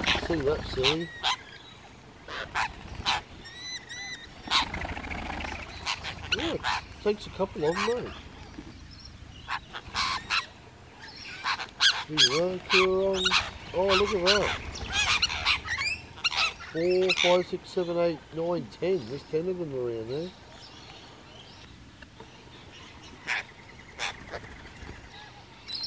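Parrots screech and chatter loudly nearby.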